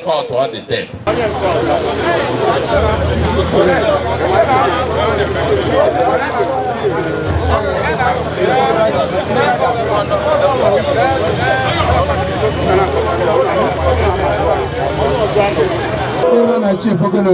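A crowd chatters and shouts excitedly.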